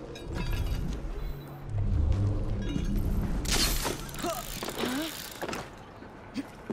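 Hands and feet scrape against a stone wall during a climb.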